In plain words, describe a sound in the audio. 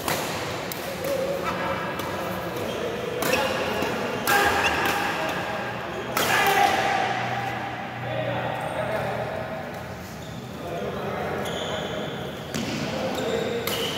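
Men talk and call out across the hall.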